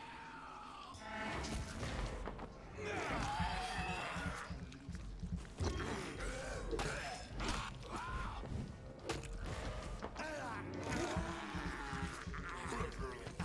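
Blows land with sharp thuds and clashes in a fight.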